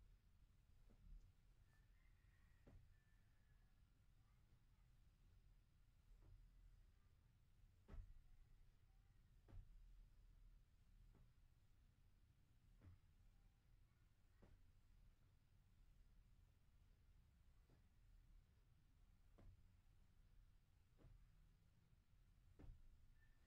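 A leg drops with soft thuds onto a mattress, again and again.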